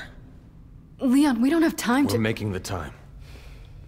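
A young woman speaks with urgency close by.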